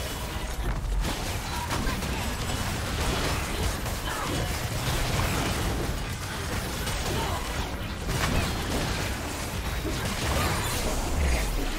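Magical blasts and hits crackle and thump during a video game battle.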